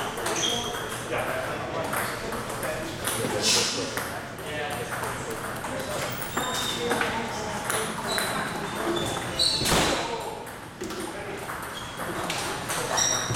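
A ping-pong ball clicks back and forth off paddles and a table.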